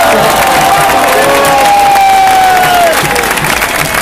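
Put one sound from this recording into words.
Spectators in a crowd whistle and cheer loudly.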